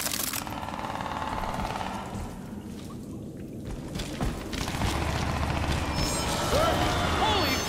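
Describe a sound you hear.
Footsteps shuffle over rubble.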